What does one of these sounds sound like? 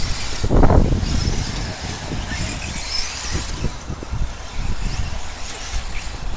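Radio-controlled short-course trucks race around a dirt track.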